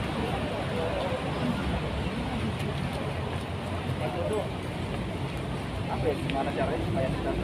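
A crowd of people talk and murmur outdoors.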